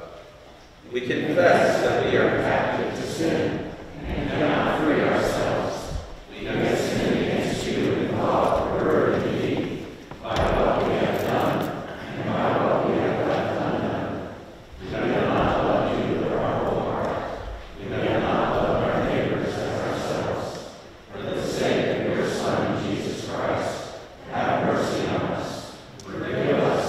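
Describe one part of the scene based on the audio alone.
A man reads aloud in a steady, measured voice in an echoing hall.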